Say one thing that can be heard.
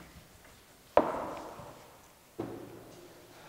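A whiteboard thumps twice, ringing briefly in an echoing room.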